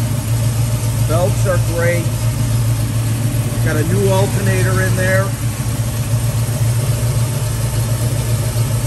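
An engine idles with a steady low rumble.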